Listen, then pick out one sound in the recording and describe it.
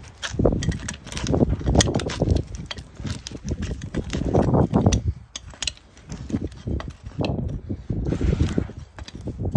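Metal pincers scrape and crunch against a horse's hoof.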